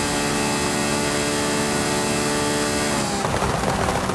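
A sports car engine roars at high speed with a steady whine.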